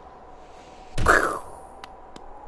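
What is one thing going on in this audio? A heavy thud sounds as a small character lands on the ground.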